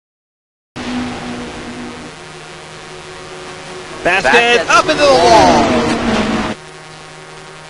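Race car engines roar steadily in a tight pack.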